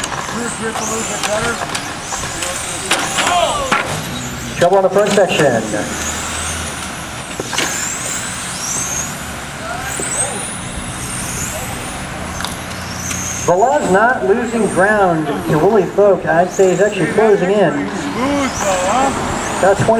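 Small electric motors whine as radio-controlled cars race around a track outdoors.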